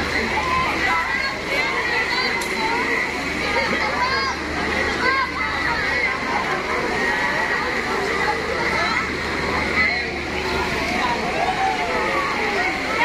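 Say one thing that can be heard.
A crowd of children shout, squeal and chatter nearby, outdoors.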